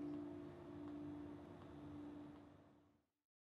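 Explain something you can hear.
A man strums an acoustic guitar.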